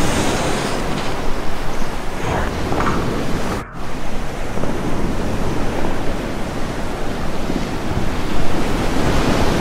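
Water splashes and crashes over a kayak as it plunges down a weir.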